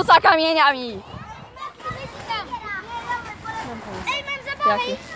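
Young children shout and squeal playfully close by.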